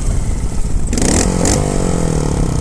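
A motorcycle engine revs up close, then its pitch slowly falls.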